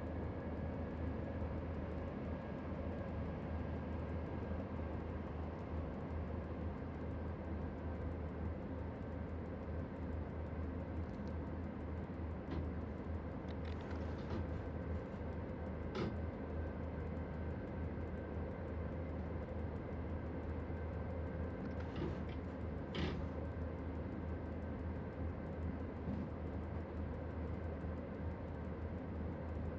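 An electric train engine hums steadily while running along the track.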